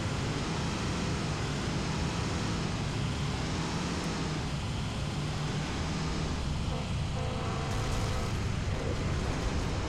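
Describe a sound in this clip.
Tyres crunch over dirt and grass.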